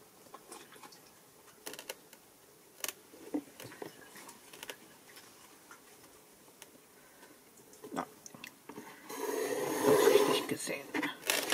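A pencil scratches softly along a ruler.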